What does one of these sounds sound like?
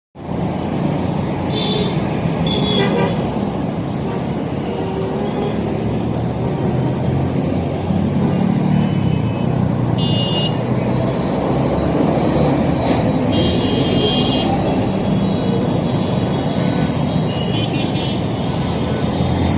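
Motorbike engines buzz by close.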